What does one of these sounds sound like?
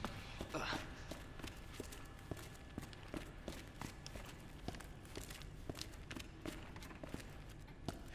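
Boots step on a hard floor.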